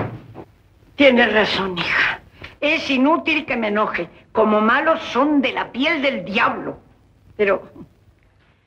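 An elderly woman speaks with animation.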